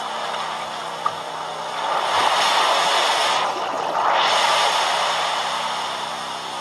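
Waves crash and surge loudly.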